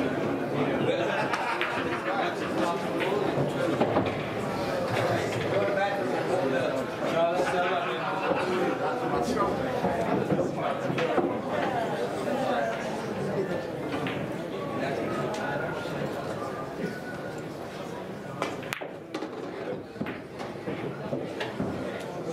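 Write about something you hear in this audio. Pool balls click together.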